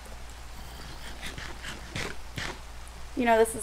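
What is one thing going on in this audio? Food is munched with quick crunchy bites.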